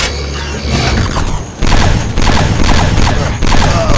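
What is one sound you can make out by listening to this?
A grenade explodes with a loud blast.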